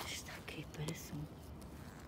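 Dry leaves and husks rustle as a hand picks chestnuts off the ground.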